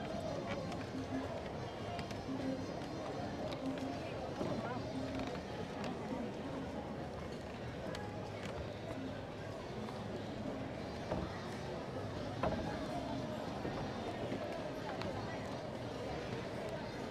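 Footsteps tap on wooden boards.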